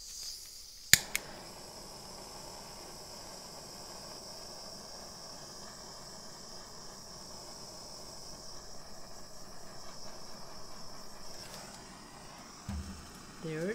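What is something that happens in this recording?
A heat gun blows with a steady whooshing hum.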